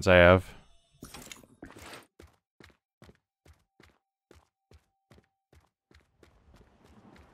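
Footsteps tap on stone at a steady pace.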